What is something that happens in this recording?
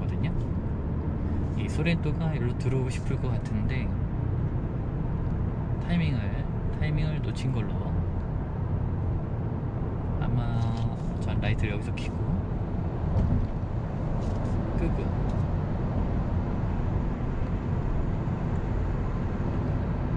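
A car drives steadily along a highway with a low rumble of tyres and engine.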